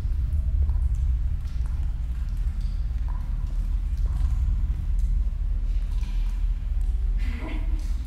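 Slow footsteps tread on a hard floor.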